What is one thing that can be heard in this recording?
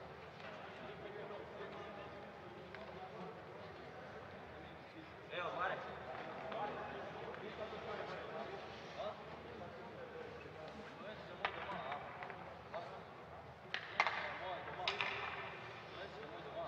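Men talk at a distance in a large echoing hall.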